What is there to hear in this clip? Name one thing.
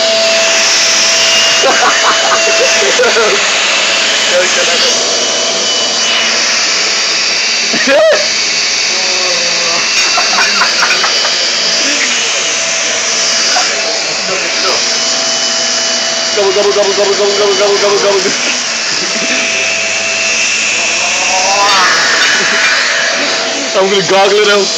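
A vacuum cleaner hums steadily nearby.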